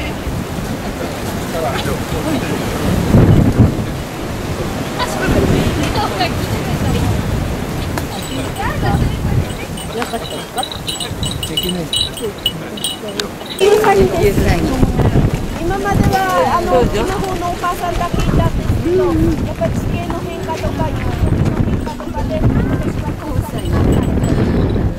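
A crowd of people chatter and talk outdoors nearby.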